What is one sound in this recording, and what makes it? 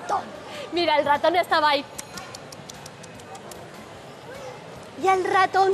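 A woman speaks with animation in a sing-song voice.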